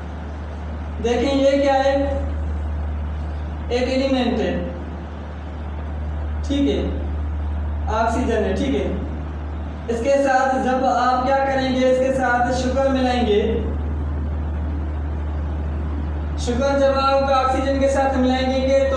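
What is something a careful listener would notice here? A young man speaks calmly in short bursts with pauses, in a small room.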